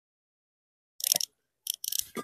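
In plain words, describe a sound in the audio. A metal rod taps and scrapes on bricks.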